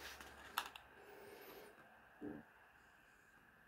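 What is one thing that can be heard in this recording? A cardboard box rustles and scrapes as hands turn it over.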